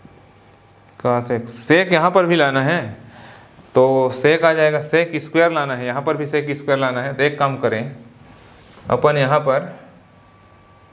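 A man explains calmly and clearly into a close microphone.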